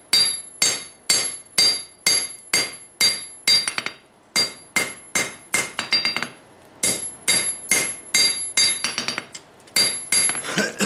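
A hammer strikes hot metal on an anvil in a fast, ringing rhythm.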